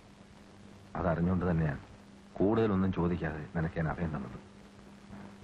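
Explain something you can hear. A man speaks calmly and seriously, close by.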